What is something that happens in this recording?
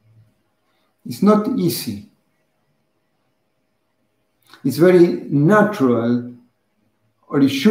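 A middle-aged man speaks calmly and closely into a microphone, with pauses.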